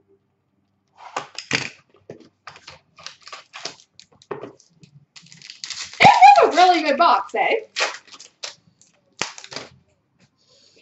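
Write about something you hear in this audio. Foil card packs rustle and crinkle as hands open them.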